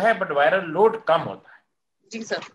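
An elderly man speaks emphatically over an online call.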